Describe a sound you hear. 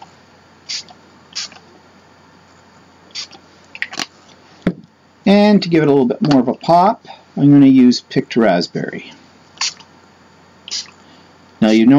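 A spray bottle hisses in short bursts.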